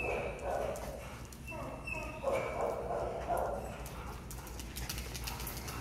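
A dog's claws click and tap on a hard floor in an echoing hall.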